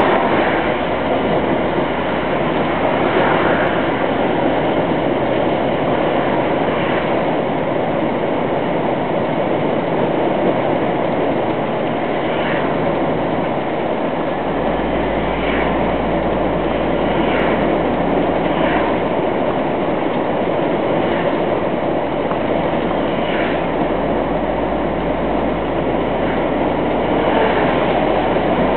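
Tyres roll with a constant rushing noise on the road.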